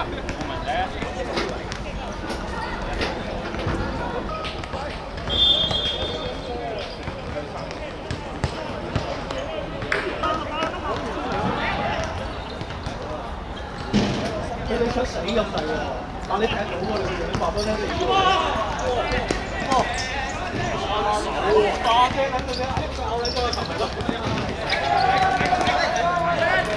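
Young men shout to each other across an outdoor court.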